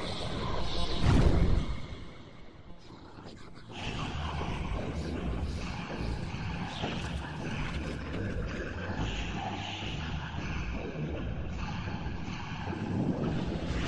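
Several singing voices play over one another, some sped up and some slowed down.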